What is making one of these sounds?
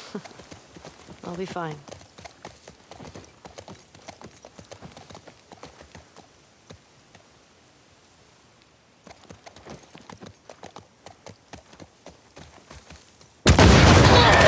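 Horse hooves clop steadily on a wet path.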